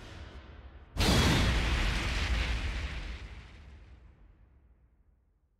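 A sharp whoosh hits with a loud boom.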